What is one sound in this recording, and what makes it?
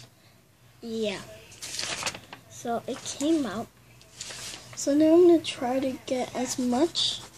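A sheet of paper slides across a tiled floor.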